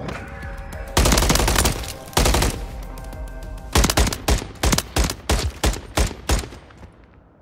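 A rifle fires loud, close bursts of shots.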